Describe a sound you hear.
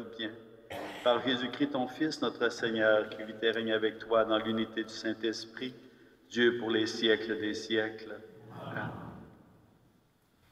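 An elderly man chants in song through a microphone, in a large echoing hall.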